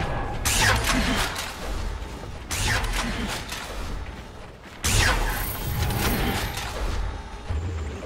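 Magic spells burst with sharp whooshing blasts.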